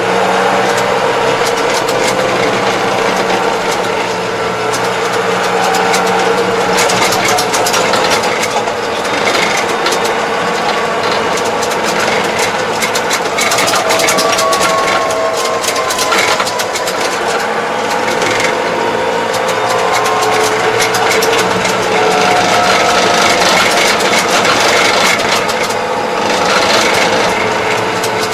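A tractor engine rumbles steadily up close.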